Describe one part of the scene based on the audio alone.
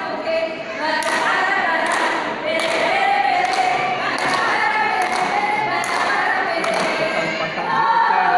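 A group of women clap their hands in rhythm.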